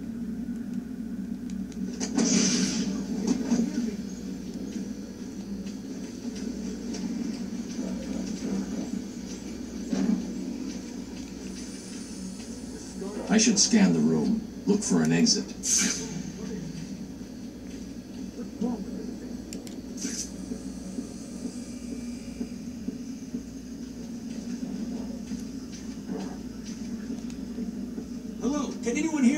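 Video game sound effects and music play from a television's speakers.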